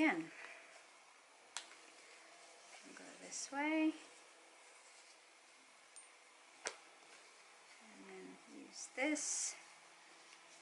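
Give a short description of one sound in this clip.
A metal chain jingles softly.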